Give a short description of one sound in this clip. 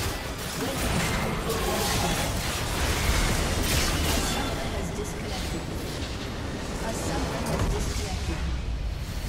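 Magic spell effects crackle and whoosh in rapid bursts.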